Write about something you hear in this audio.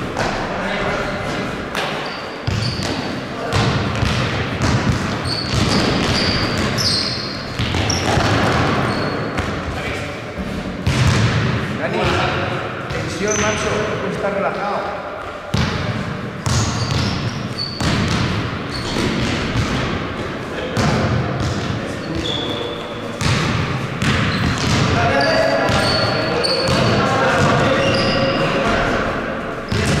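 Young men call out to each other across an echoing hall.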